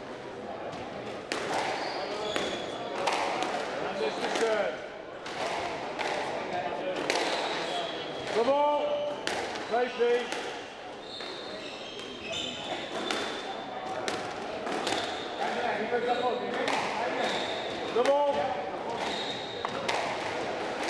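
A squash ball smacks hard against the walls in a quick rally, echoing around the court.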